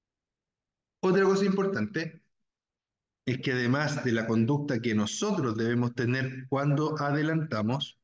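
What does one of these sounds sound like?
A man speaks calmly and explains through a microphone on an online call.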